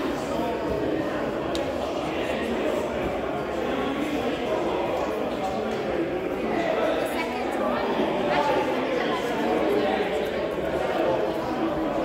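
Many people talk at once in a large echoing hall.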